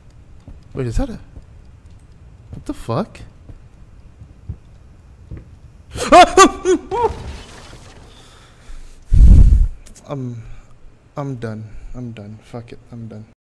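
A young man talks close into a microphone in short bursts.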